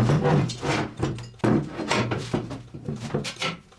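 Steel bars clank as they are moved on a metal table.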